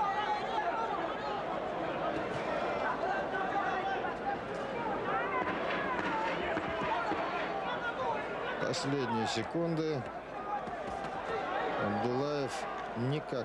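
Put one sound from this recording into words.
A large crowd murmurs and cheers in an arena.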